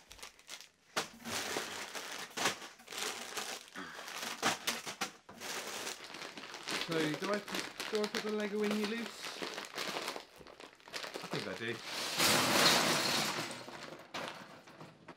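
Plastic wrapping crinkles and rustles in a young man's hands.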